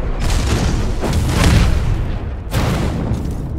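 A fireball whooshes and explodes with a deep roar.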